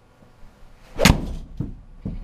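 A golf club strikes a ball with a sharp, loud crack.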